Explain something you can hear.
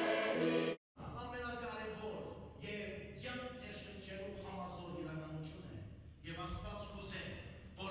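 A congregation sings in a large echoing hall.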